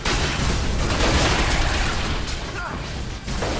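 Explosions boom and debris clatters.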